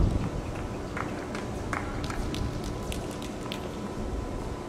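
A tennis ball bounces repeatedly on a hard court.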